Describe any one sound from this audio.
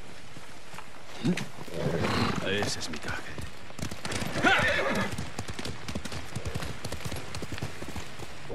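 A horse gallops, its hooves pounding on a dirt path.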